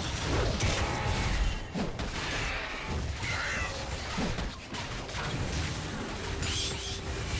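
Magic blasts and blows crash repeatedly in a game fight.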